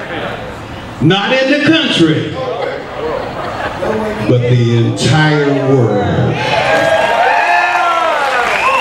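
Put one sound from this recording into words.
Several men sing loudly together through microphones.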